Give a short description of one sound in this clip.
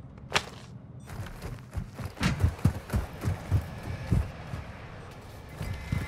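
Footsteps thud quickly on a hard floor.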